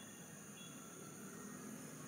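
A young monkey squeals briefly.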